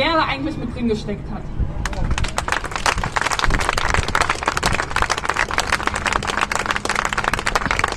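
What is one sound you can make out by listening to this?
A woman speaks into a microphone through loudspeakers outdoors.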